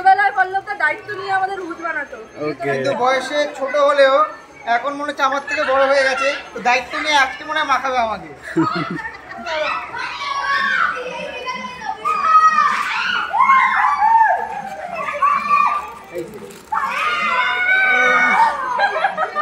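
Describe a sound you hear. A young woman speaks and laughs close by.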